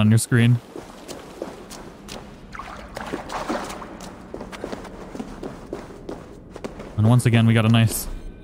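Footsteps crunch and scrape on rocky ground.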